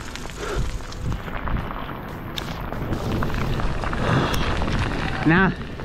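Bicycle tyres rattle over a rough dirt trail.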